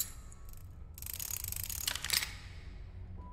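Wooden parts slide and clunk into place.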